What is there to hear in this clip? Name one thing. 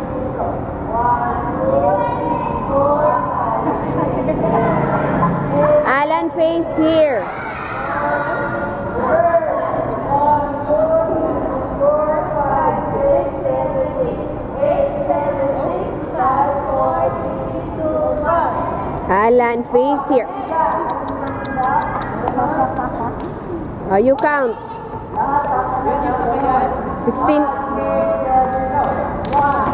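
A group of children sing together in a large echoing hall.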